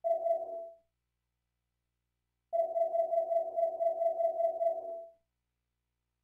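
Short electronic ticks sound in quick succession as a menu list scrolls.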